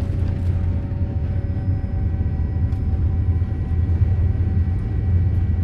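A jet airliner's engines roar steadily as it speeds along a runway.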